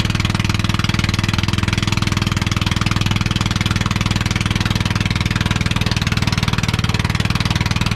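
A boat engine chugs steadily and loudly close by.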